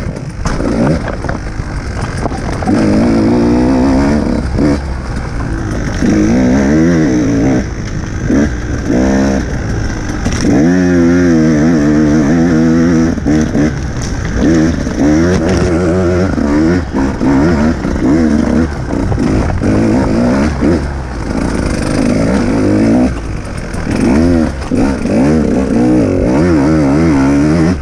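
Tyres crunch over rocks and dirt.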